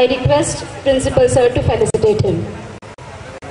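A woman speaks into a microphone over a loudspeaker in a large hall.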